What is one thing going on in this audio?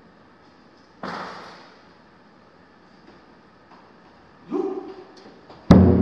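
Large drums boom loudly in an echoing hall.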